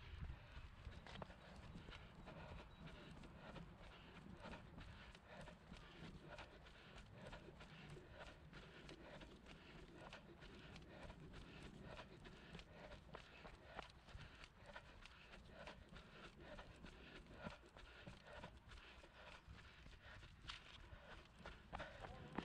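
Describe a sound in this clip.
Footsteps thud on grass at a running pace.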